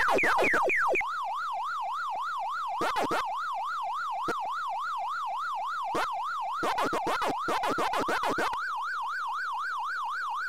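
A wavering electronic siren tone rises and falls steadily.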